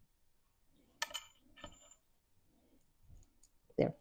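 Small beads click softly as a woman threads them onto a wire.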